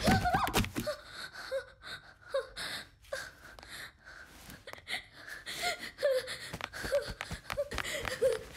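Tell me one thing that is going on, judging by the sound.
A young woman sobs and wails in distress.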